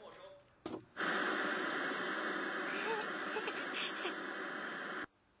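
A television hisses loudly with static.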